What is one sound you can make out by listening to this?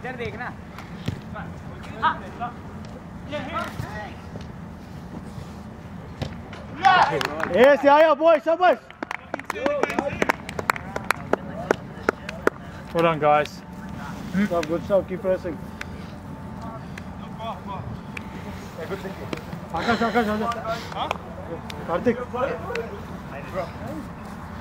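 Young men shout and call to each other outdoors.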